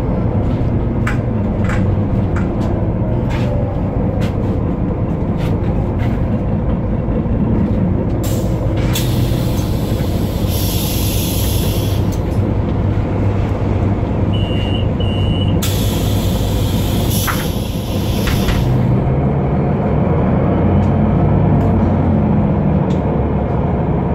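A city bus's diesel engine drones, heard from inside the cabin.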